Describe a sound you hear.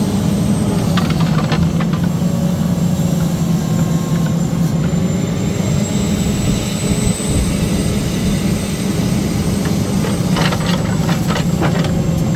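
Logs knock and clatter against each other.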